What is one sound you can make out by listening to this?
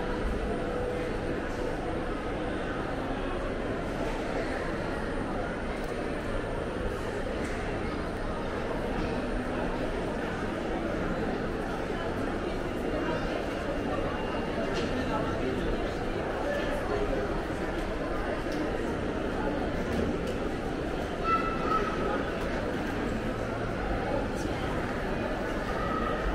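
A crowd murmurs indistinctly in a large echoing hall.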